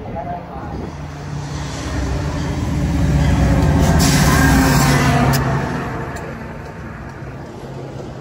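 A train approaches and rumbles past close by.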